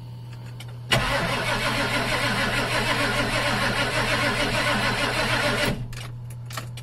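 A diesel engine cranks with a loud, steady whirring.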